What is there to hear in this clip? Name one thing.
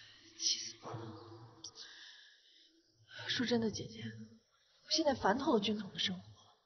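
A young woman speaks close by in an annoyed, complaining tone.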